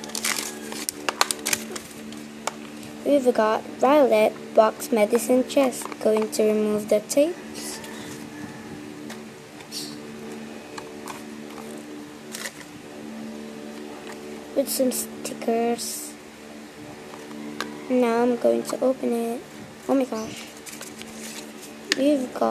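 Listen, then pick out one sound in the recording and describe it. A small plastic box clicks and knocks as it is handled and opened.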